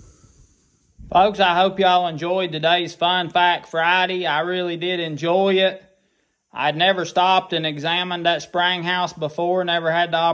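A man talks calmly and close to a microphone.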